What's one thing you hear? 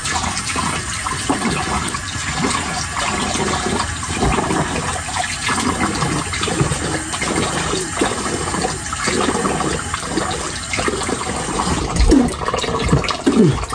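Fabric rustles and brushes against the microphone.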